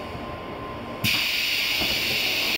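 Air hisses loudly and steadily as a brake is released.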